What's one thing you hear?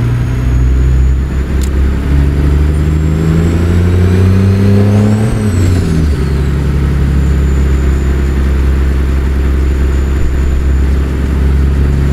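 A truck engine rumbles deeply, revving higher and then dropping back as the gear changes.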